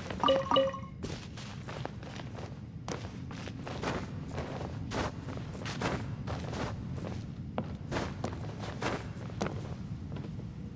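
Quick footsteps patter over the ground.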